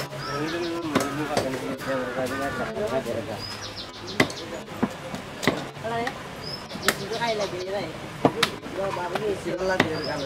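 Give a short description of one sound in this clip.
A heavy knife chops through fish onto a wooden block with sharp thuds.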